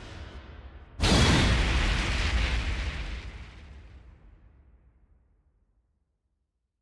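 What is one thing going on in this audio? A deep boom hits and echoes away.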